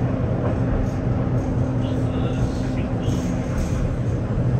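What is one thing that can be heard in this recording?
A tram's motor hums low and steady.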